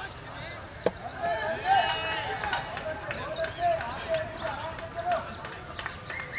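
Young men shout and cheer out on an open field.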